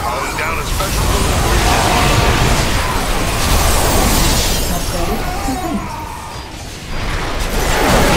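Game creatures screech and growl.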